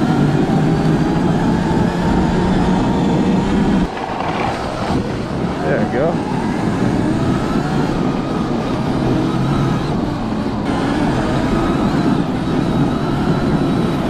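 Fat tyres crunch and hiss over packed snow.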